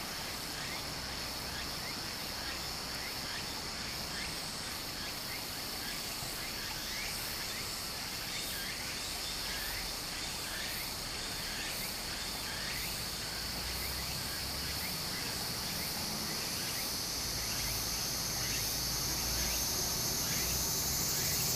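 Shallow water trickles and babbles steadily over stones close by.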